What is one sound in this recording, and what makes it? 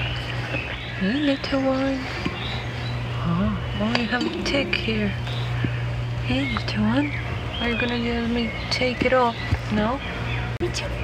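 A cat meows several times nearby.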